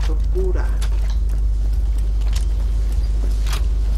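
Electricity crackles and buzzes nearby.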